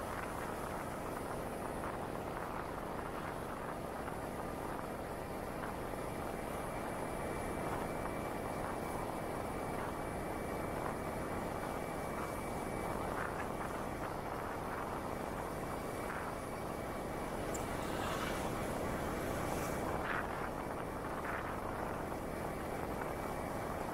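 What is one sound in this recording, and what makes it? A motorcycle engine hums steadily while riding along a street.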